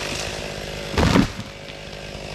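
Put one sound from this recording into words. A tree crashes heavily to the ground.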